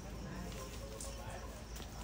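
A monkey scampers lightly across rock.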